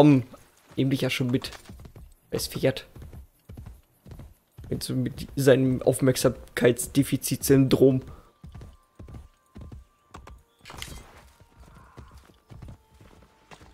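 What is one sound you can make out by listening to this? Horse hooves gallop rhythmically over grass.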